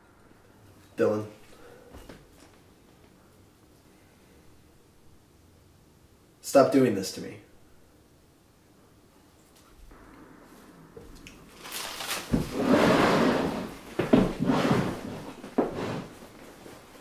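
A young man speaks calmly nearby, in short bursts.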